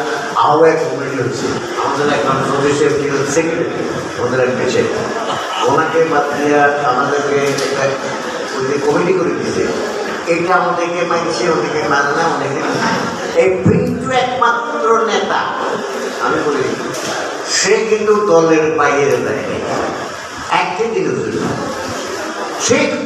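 An elderly man speaks with animation into a microphone, amplified in a room.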